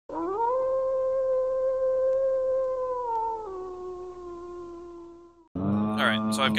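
A wolf howls in a long, drawn-out cry that drops and fades.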